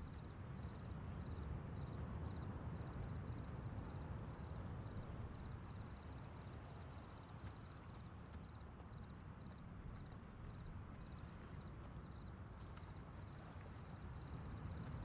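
Footsteps run quickly through grass.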